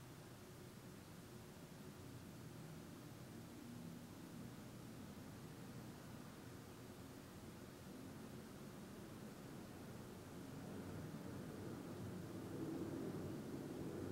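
A middle-aged man speaks slowly and calmly.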